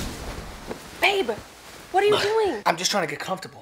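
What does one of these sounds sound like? A young woman speaks up nearby, startled.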